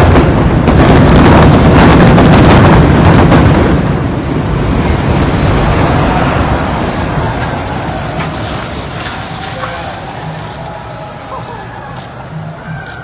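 A building collapses with a loud, deep rumbling roar that slowly fades.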